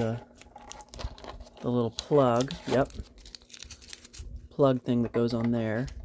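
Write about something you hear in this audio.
Tape peels and crinkles close by.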